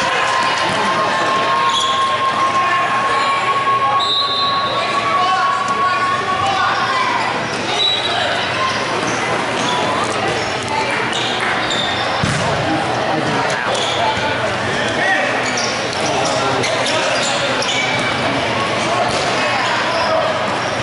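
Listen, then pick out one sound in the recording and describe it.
A ball is kicked with dull thumps on a hard floor.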